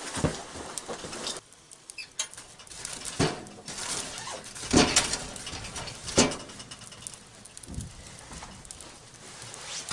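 A wood fire crackles in a stove.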